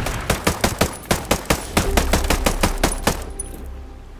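A rifle fires in rapid bursts, echoing outdoors.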